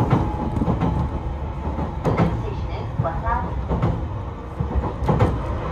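A train rumbles steadily along the rails, heard from inside, with rhythmic clacks of the wheels.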